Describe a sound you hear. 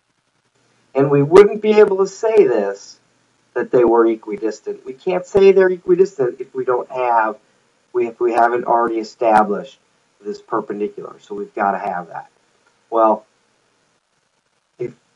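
A middle-aged man speaks calmly into a close microphone, explaining.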